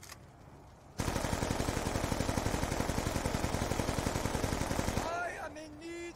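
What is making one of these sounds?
A rifle fires in a rapid, steady burst.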